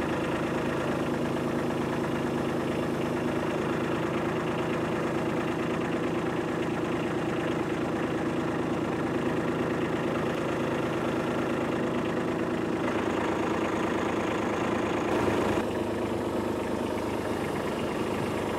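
A tractor engine runs steadily close by.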